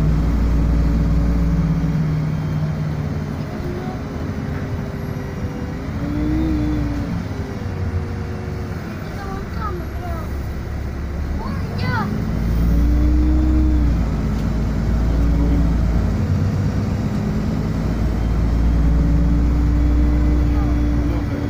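Traffic rumbles past outside.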